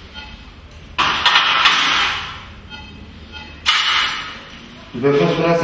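Metal instruments clatter in a metal tray.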